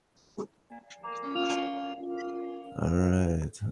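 A guitar is strummed briefly.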